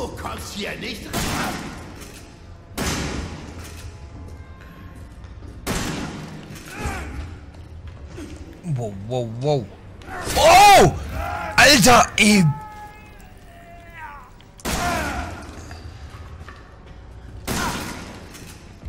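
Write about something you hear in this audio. A shotgun fires loud booming shots.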